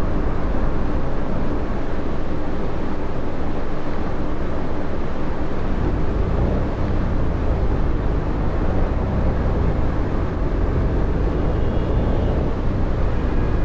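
A bus engine hums and rumbles steadily as the bus drives.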